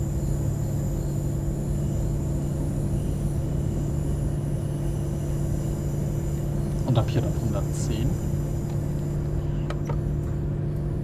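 A diesel railcar engine drones as the train runs along the track.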